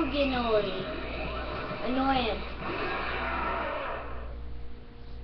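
A dragon roars and screeches through a small television speaker.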